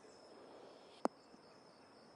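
A golf club strikes a ball with a single sharp crack.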